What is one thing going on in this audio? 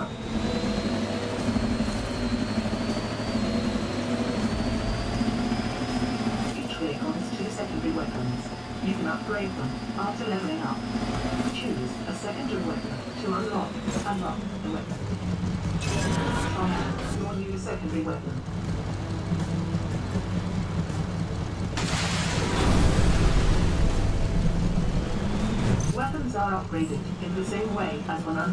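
The engine of an off-road buggy hums as the buggy drives.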